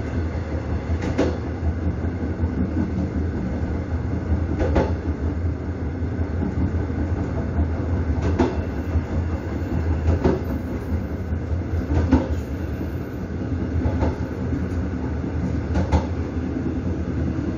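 A train rumbles as it rolls along the track.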